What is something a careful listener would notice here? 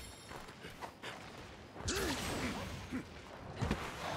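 A blade slashes and strikes a creature with sharp hits.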